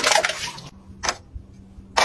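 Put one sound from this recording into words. A plastic toothbrush holder clicks as a toothbrush is pulled out.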